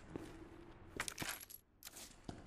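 A short chime sounds as an item is picked up.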